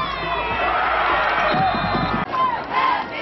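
A crowd cheers in the stands outdoors.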